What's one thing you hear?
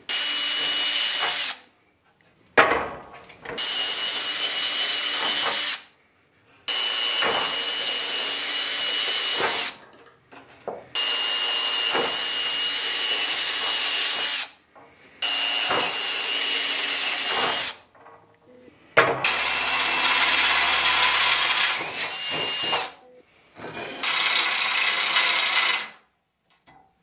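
A cordless drill whirs in bursts as it bores into metal.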